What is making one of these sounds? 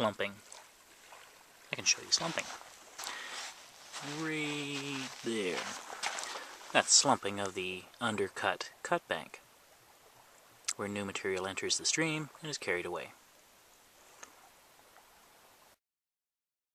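A small stream of water trickles and gurgles over sand and gravel.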